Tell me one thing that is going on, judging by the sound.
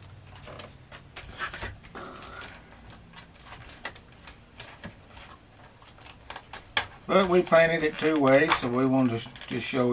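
Paper rustles and crinkles in a man's hands.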